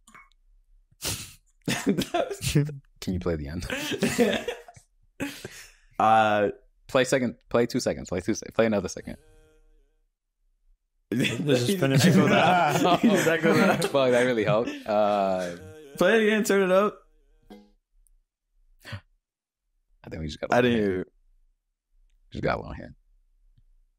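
Several young men talk and laugh into close microphones.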